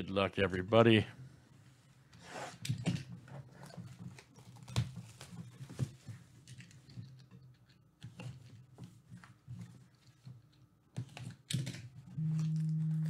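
A plastic-wrapped box is handled and tapped on a table.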